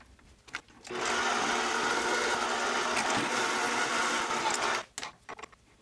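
A lathe tool scrapes as it cuts into metal.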